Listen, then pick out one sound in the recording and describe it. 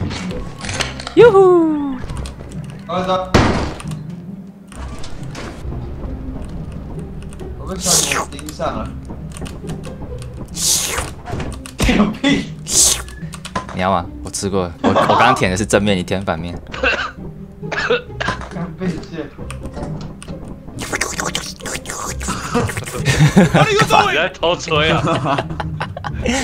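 Several young men talk and laugh over an online call with animation.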